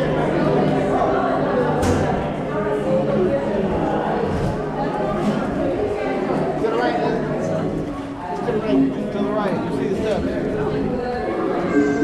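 A crowd of men, women and children chatters all around.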